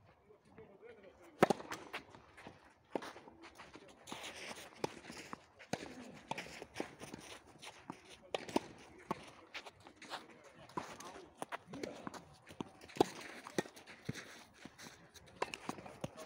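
Sneakers scuff and slide on a clay court.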